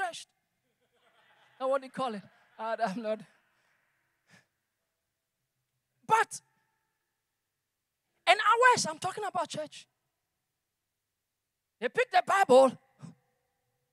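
A man speaks with animation into a microphone through loudspeakers, pausing between phrases.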